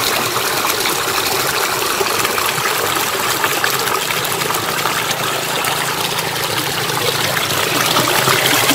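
Water rushes and splashes steadily over a small weir close by.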